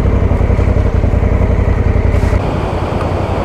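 A motorcycle engine idles with a low, steady throb.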